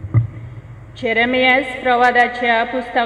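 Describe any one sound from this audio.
A woman reads out through a microphone.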